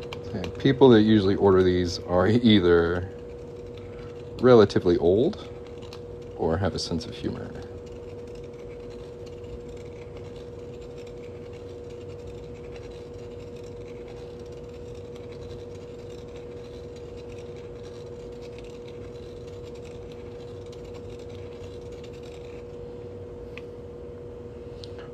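A small metal tool scrapes and ticks lightly against a hard surface.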